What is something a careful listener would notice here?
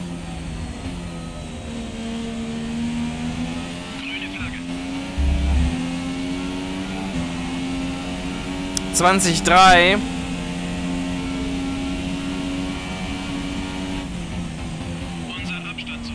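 A racing car engine whines loudly, rising in pitch through each gear and dropping at each shift.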